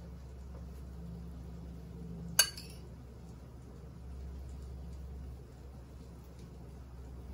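A spoon softly scrapes and spreads soft food.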